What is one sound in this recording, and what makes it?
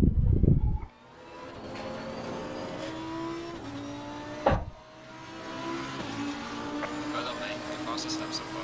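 A racing car engine roars as it speeds up and shifts gears.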